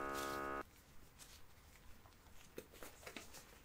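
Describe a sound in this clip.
A rubber glove rustles as it is handled.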